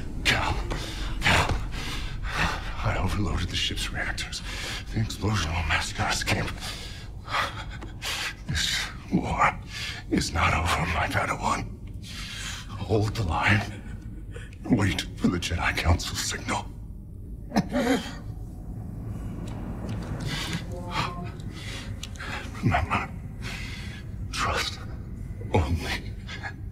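An elderly man speaks weakly and haltingly, close by.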